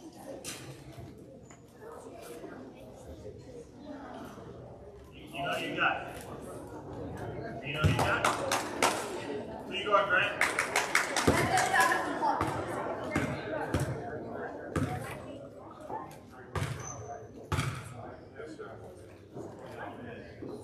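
Sneakers squeak and thump on a gym floor in a large echoing hall.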